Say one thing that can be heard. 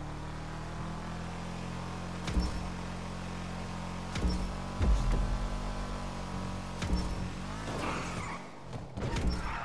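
A sports car engine roars at full throttle.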